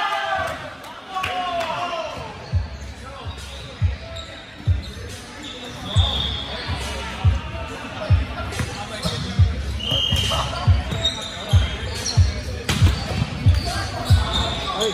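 Men call out to each other across an echoing indoor court.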